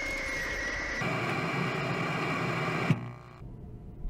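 Harsh static hisses loudly.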